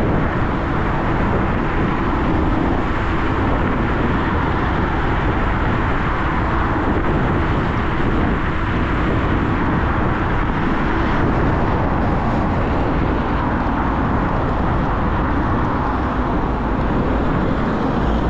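A motorcycle engine hums steadily at speed.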